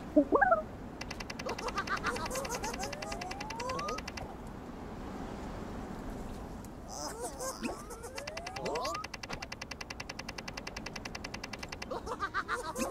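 A small robot chatters in rapid electronic beeps.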